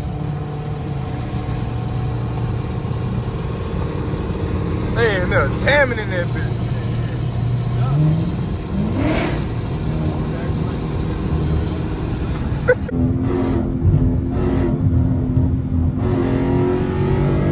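A car engine hums steadily while driving at speed on a highway.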